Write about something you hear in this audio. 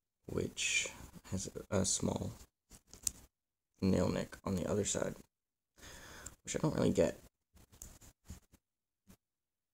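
A small metal blade clicks as it snaps open and shut.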